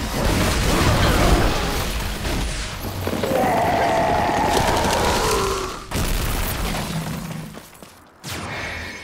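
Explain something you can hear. Heavy blows and explosions crash repeatedly.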